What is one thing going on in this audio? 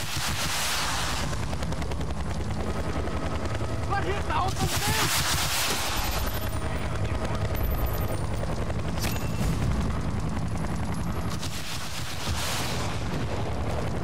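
Explosions boom in bursts.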